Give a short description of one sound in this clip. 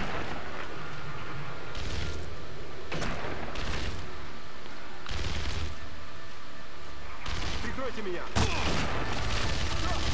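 A fire roars and crackles in the distance.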